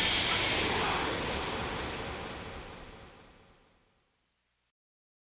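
A concert crowd cheers loudly and then fades away.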